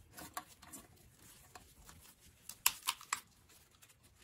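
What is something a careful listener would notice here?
A metal tool clicks and taps against metal parts.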